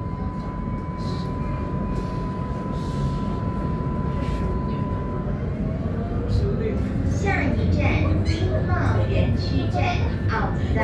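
A tram rumbles steadily along its tracks, heard from inside.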